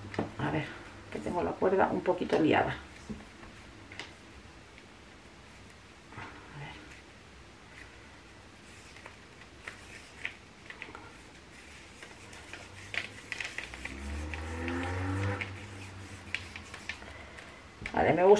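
Twine rustles softly as it is unwound from a ball.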